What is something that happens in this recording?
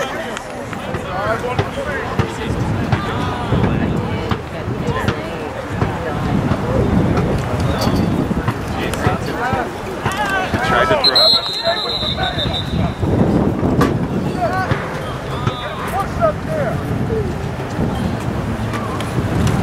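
Men shout and call out nearby outdoors.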